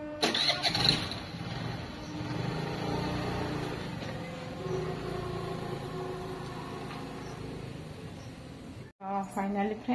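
A motor scooter engine runs and pulls away.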